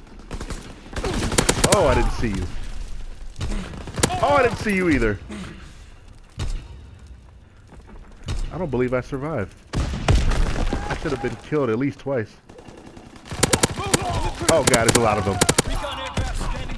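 Suppressed gunshots fire in quick bursts.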